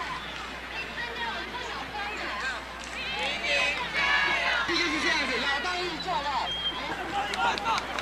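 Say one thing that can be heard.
A large crowd of children cheers and shouts loudly outdoors.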